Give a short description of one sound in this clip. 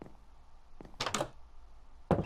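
A wooden door swings open with a short creak.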